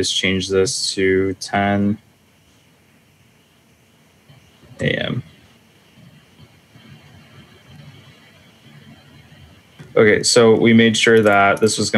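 A man speaks calmly over an online call microphone, in short bursts with pauses.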